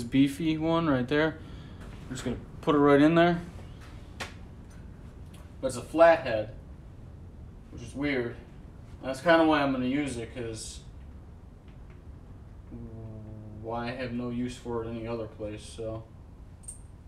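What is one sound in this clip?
A man talks casually, close up.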